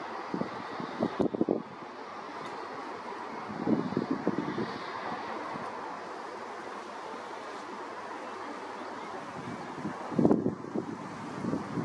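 A freight train rumbles steadily across a bridge.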